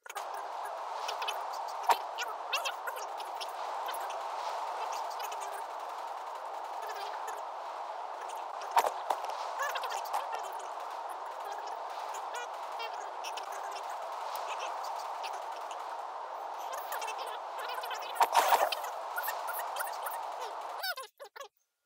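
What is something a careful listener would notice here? Footsteps tread steadily over grass.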